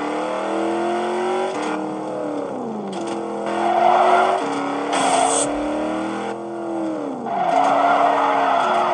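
A car engine roars at high revs, dropping in pitch with each gear change.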